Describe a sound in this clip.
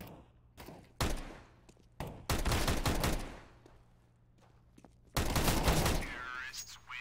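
A pistol fires several sharp shots in quick succession.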